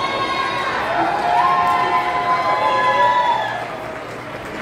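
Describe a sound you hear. A group of children sings together in a large echoing hall.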